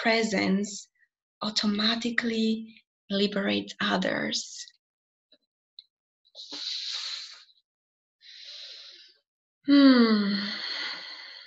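A young woman talks calmly and cheerfully close to a microphone.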